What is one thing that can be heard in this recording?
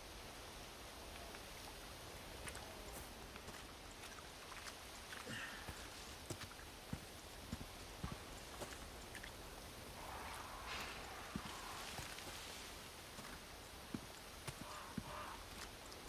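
Wind blows softly outdoors.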